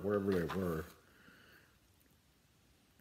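A match strikes and flares.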